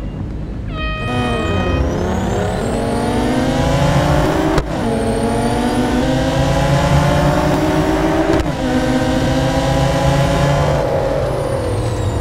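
Race car engines roar and rise in pitch as they accelerate, shifting gears.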